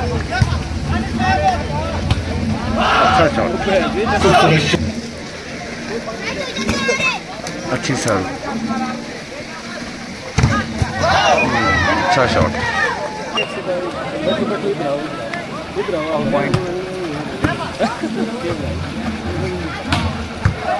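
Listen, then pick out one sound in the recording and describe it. Young men on a court call out to each other.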